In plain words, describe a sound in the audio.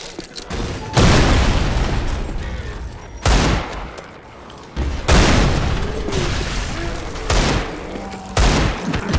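A pistol fires single loud shots.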